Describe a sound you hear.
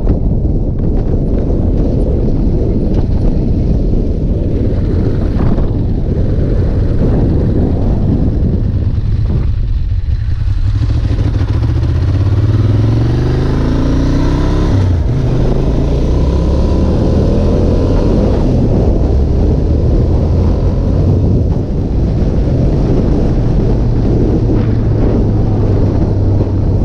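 A motorcycle engine hums and revs up and down as it rides.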